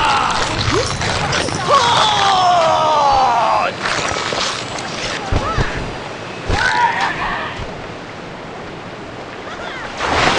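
Water splashes as a shark swims through shallow waves.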